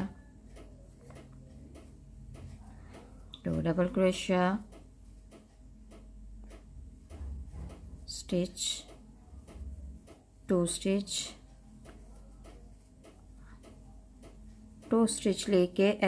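A crochet hook softly clicks and scrapes through yarn.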